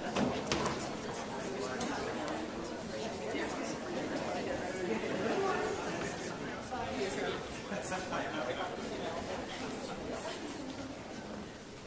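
A band of brass and wind instruments plays along.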